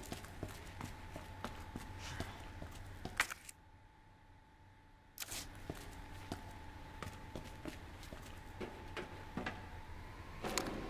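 Footsteps thud steadily on a hard floor, echoing slightly.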